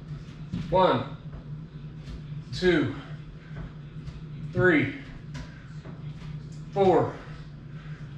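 A young woman groans with effort at each push-up, about every two seconds.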